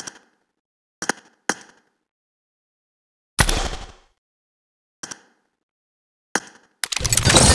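Short game button clicks tap now and then.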